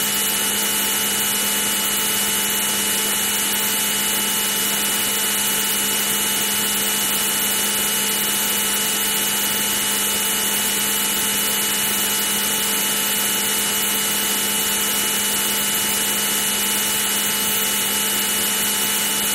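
A fighter jet's engine drones steadily in an old computer game.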